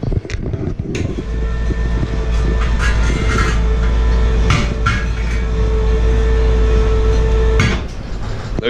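An electric lift motor hums steadily while raising a heavy load.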